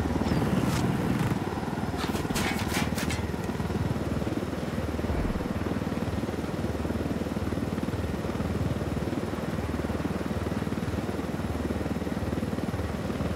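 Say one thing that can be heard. A helicopter's rotor thumps steadily in flight.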